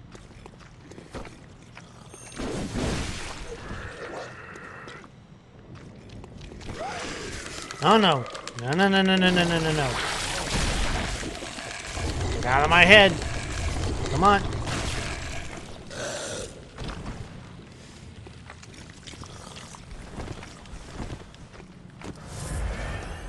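A blade swishes and slashes through flesh.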